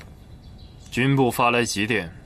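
A man speaks firmly and loudly, close by.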